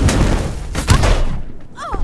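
A magic lightning bolt crackles and hisses.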